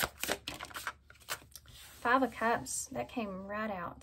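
A card is laid down on a table.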